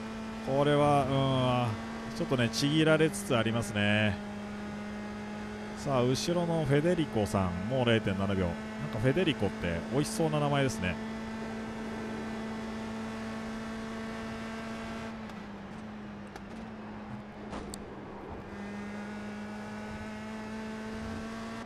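A racing car engine drones at high revs.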